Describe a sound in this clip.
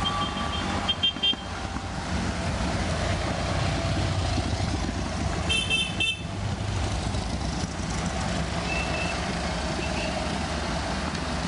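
Air-cooled two-cylinder vintage Fiat 500s putter past one after another, coasting downhill.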